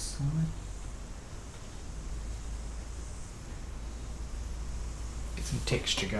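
A paintbrush brushes softly across canvas.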